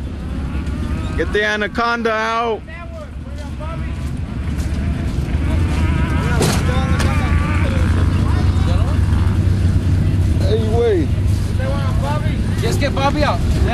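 A truck engine idles with a deep, steady rumble.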